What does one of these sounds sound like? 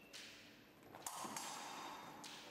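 Fencing blades clash and scrape together.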